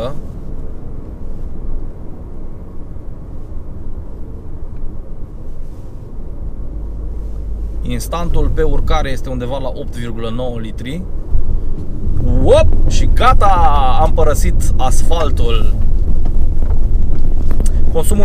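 A car engine hums steadily with low road rumble inside a moving car.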